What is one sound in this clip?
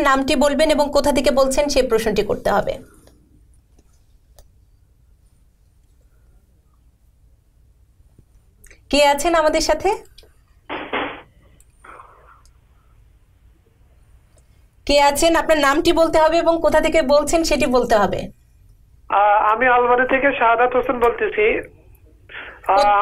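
A woman speaks with animation into a microphone, pausing now and then.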